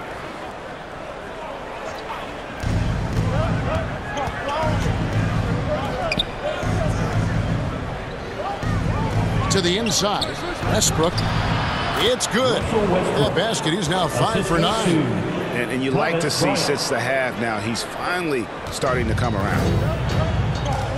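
A crowd cheers in a large echoing arena.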